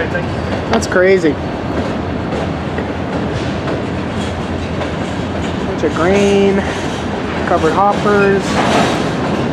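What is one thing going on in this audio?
Train wheels squeal sharply on the rails now and then.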